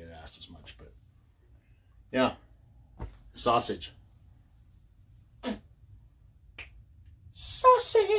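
A man talks casually, close by, in short bursts with pauses.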